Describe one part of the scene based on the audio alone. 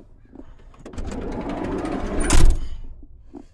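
A car door handle clicks and the door opens.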